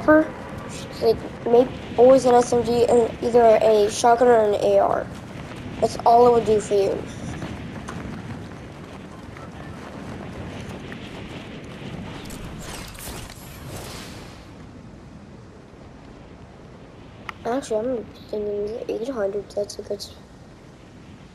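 Wind rushes past steadily during a fall through the air.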